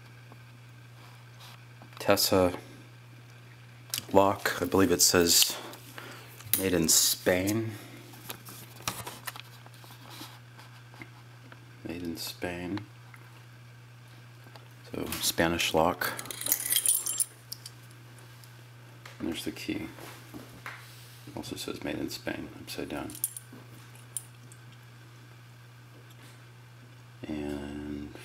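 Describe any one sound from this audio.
Small metal parts click and rattle as they are handled.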